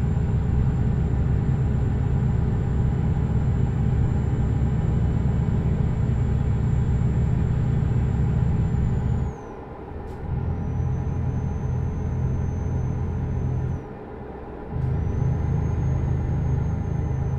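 Tyres roll over a snowy road.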